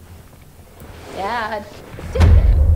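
A young woman speaks tensely.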